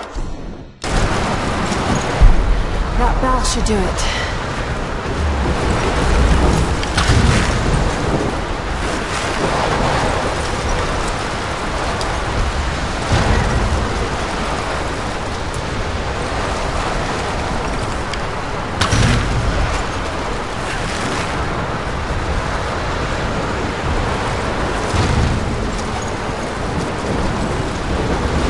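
Strong wind roars steadily.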